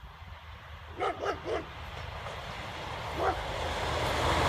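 A train horn sounds in short blasts.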